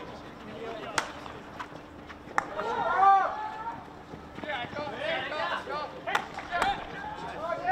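A hockey stick sharply strikes a ball.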